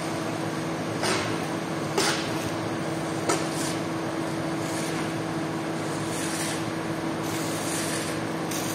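Water splashes and sloshes as foam is pushed along.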